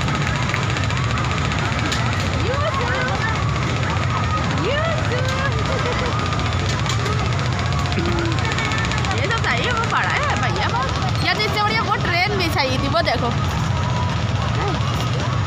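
A crowd of children and adults chatters and calls out at a busy fair.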